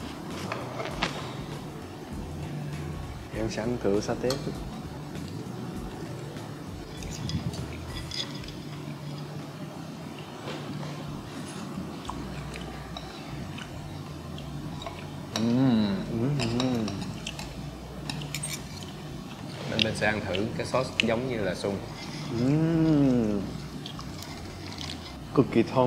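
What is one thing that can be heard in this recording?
Cutlery scrapes and clinks against a plate.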